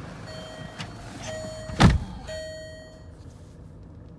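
A car's warning chime beeps in short, repeated tones.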